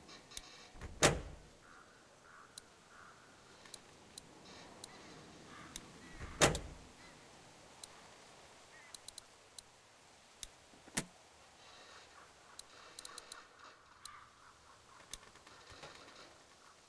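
Heavy electrical switches clunk loudly into place.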